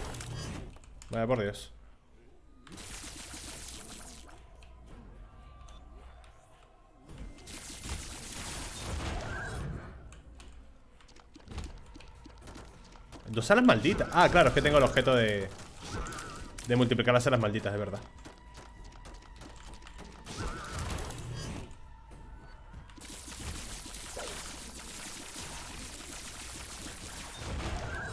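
Video game sound effects pop and zap.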